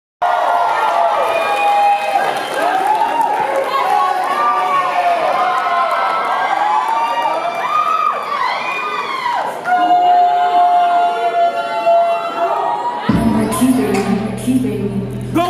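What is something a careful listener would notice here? A young man sings into a microphone, heard through loudspeakers in a large hall.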